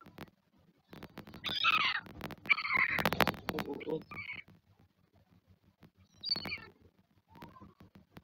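An albatross chick squawks and clacks its bill.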